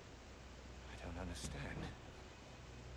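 A middle-aged woman speaks in a puzzled, questioning voice.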